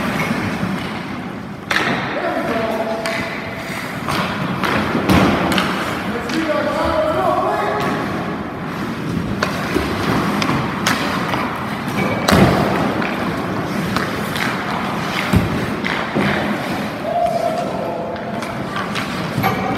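Hockey skates glide on ice as a skater passes by.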